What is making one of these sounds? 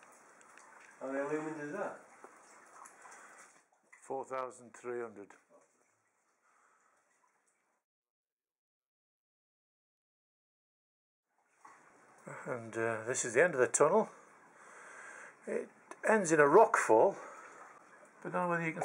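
A man talks calmly nearby, in short bursts.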